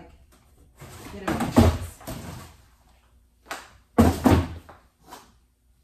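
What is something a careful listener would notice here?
Cardboard boxes tumble and crash onto a hard floor.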